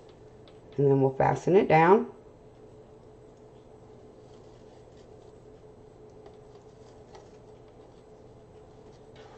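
Mesh ribbon rustles and crinkles as it is handled.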